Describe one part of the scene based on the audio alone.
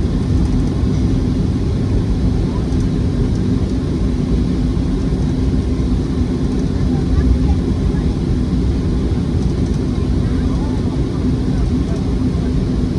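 Tyres rumble over a runway as an airliner taxis.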